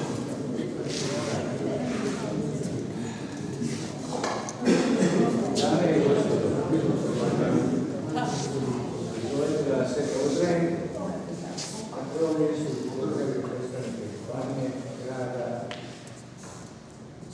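A man speaks loudly to a crowd in a large echoing hall.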